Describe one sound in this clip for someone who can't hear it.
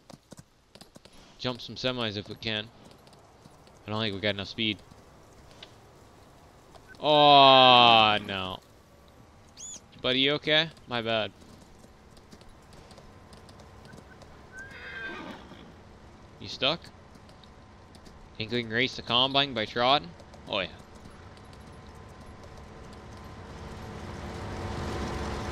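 A horse gallops with steady hoofbeats.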